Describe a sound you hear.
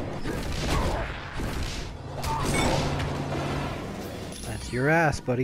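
Magic energy blasts crackle and whoosh in a rapid burst.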